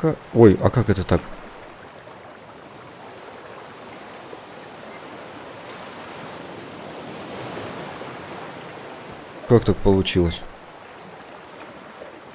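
Rain and wind hiss steadily over the sea.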